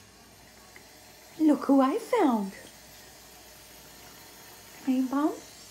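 Water trickles from a tap into a sink.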